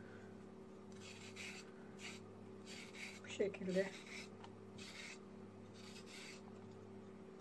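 A peeler scrapes along a carrot in short, repeated strokes.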